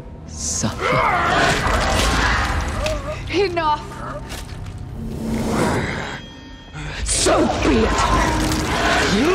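A woman shouts angrily close by.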